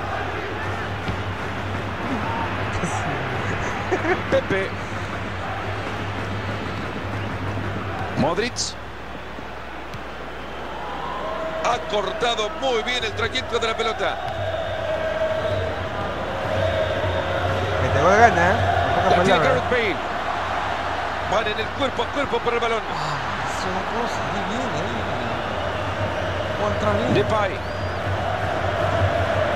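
A large stadium crowd cheers and chants steadily.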